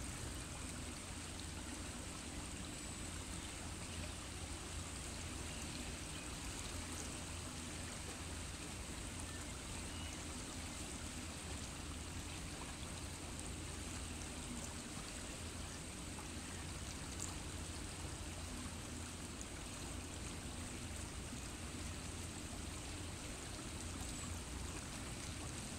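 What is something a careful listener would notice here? Wind blows steadily outdoors.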